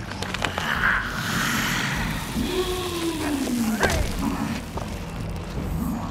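Wooden platforms creak as they rise out of the ground.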